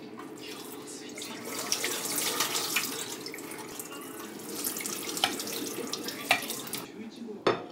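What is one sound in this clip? Hands swish and rinse noodles in water.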